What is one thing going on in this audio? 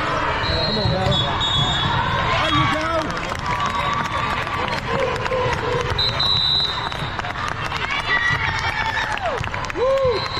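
A volleyball thumps against hands and the floor.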